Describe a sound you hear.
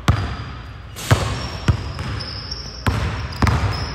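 A basketball bounces on a hard court floor, echoing in a large hall.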